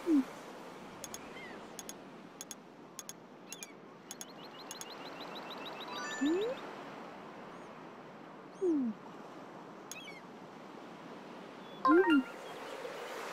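A golf club swishes through the air in a few quick practice swings.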